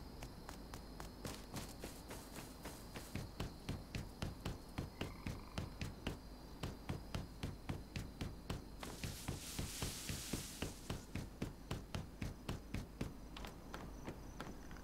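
Footsteps crunch steadily over the ground.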